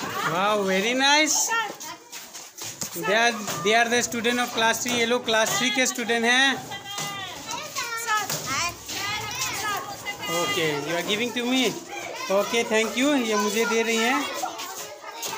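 A group of children sing together close by.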